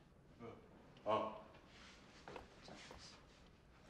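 A man speaks quietly and meekly nearby.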